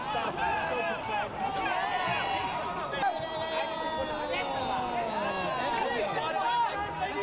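A crowd of people chatters and calls out around.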